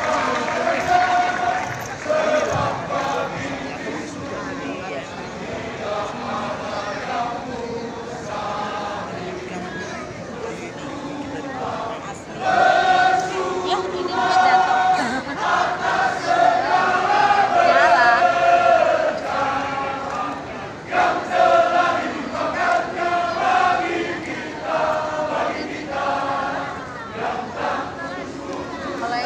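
Singers perform a song through loudspeakers in a large echoing hall.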